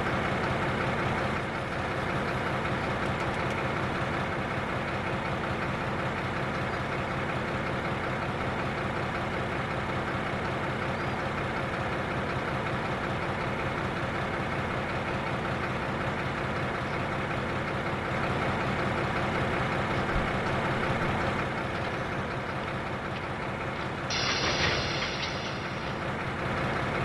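A locomotive's diesel engine idles with a steady low hum.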